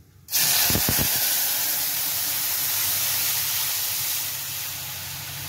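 Liquid sizzles in a hot wok.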